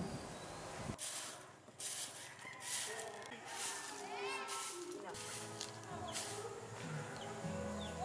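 A stiff broom sweeps across dusty ground in short strokes.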